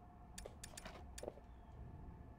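Menu selections tick with short sharp clicks.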